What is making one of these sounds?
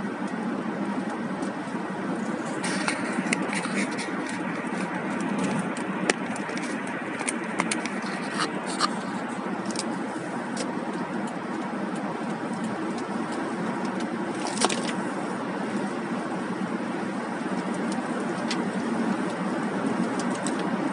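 A car drives steadily along a highway, with a low road rumble from inside.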